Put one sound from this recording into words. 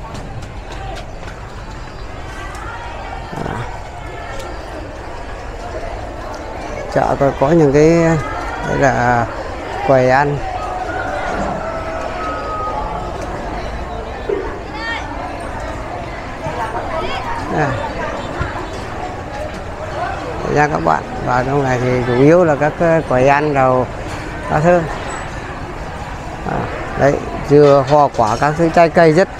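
People chatter in a busy open-air market.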